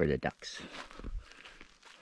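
A dog's paws patter on dry dirt and twigs.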